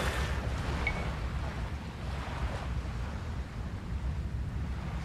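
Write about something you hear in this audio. Waves lap gently against a shore.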